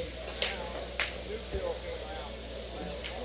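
Pool balls clack together and scatter across the table.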